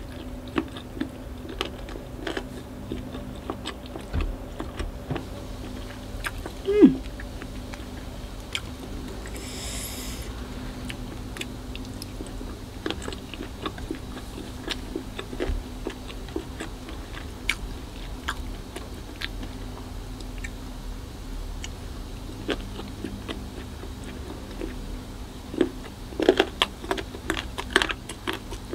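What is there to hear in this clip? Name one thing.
A woman chews meatballs with wet, smacking mouth sounds close to the microphone.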